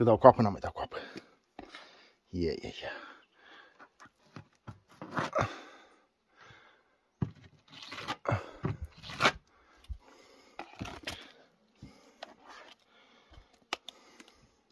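A trowel stirs and squelches thick wet plaster in a bucket.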